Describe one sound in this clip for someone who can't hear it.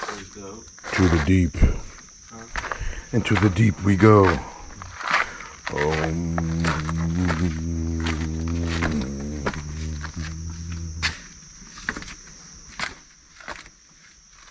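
Sandals scuff and tap on stone steps as a person walks down.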